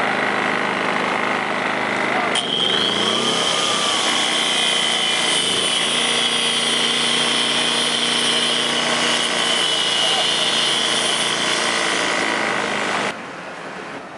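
A pump hums steadily outdoors.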